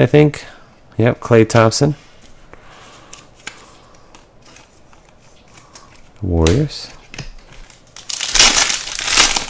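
Trading cards slide and tap against each other in hands.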